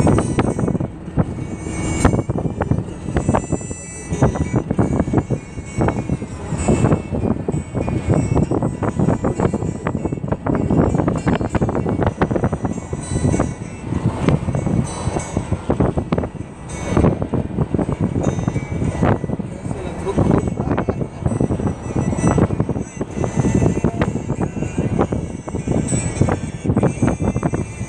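Wind buffets loudly through an open car window in uneven gusts.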